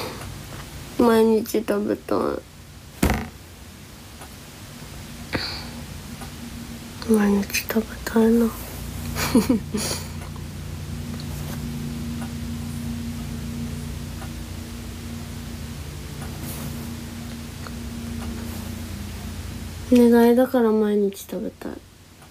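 A young woman speaks softly and closely into a microphone.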